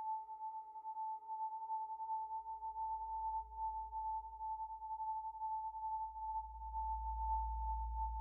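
A synthesizer plays a steady electronic tone.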